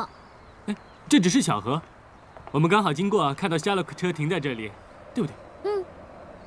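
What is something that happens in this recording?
A young man speaks casually up close.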